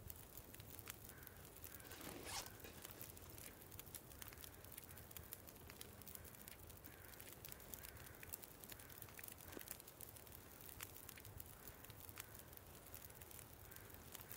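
Soft menu clicks tick repeatedly.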